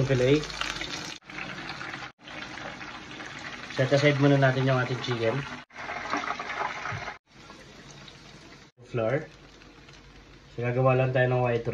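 Breaded chicken sizzles in hot oil in a pan.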